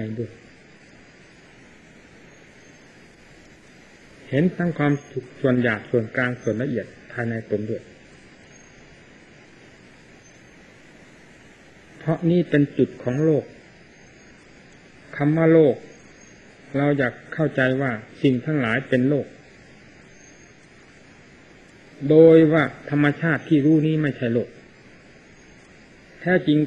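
An elderly man speaks slowly and calmly into a microphone, in bursts with pauses.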